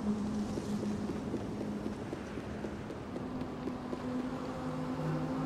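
Small footsteps creak on wooden boards.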